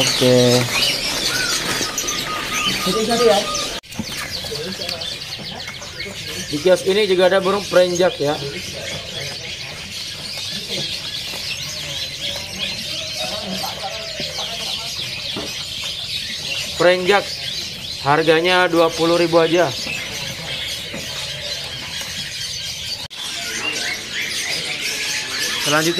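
Many small birds chirp and twitter busily.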